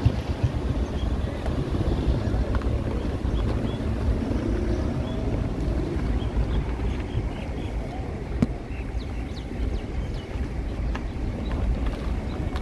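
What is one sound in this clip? A car drives along a bumpy road, its engine and tyres rumbling steadily inside the cabin.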